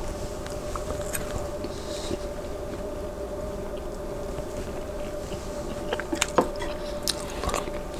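A man chews food close to a microphone.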